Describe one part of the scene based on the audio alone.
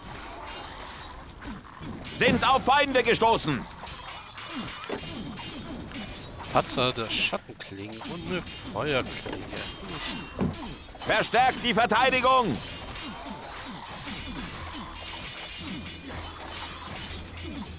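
Weapons clash in a noisy battle.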